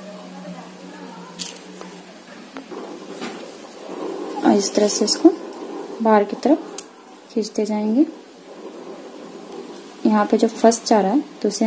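Cloth rustles softly as hands handle it.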